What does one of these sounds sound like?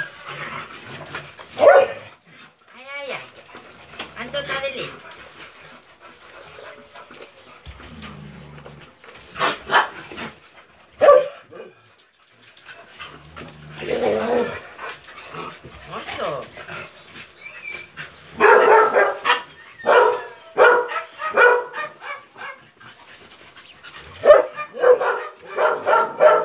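Dog paws patter and scuffle on a hard floor.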